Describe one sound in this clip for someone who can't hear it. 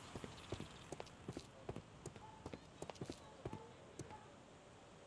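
Footsteps tap on cobblestones.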